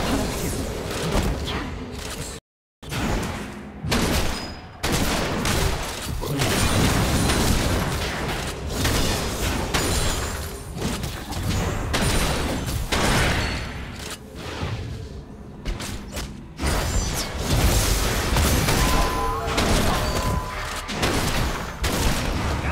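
Magic spells crackle and blast in a busy fantasy battle.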